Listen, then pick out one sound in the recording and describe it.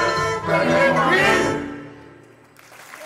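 An orchestra and singers finish a loud song with a held chord.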